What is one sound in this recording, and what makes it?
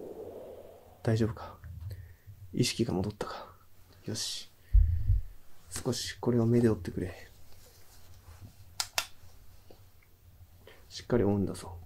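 A young man speaks quietly and close by, his voice muffled.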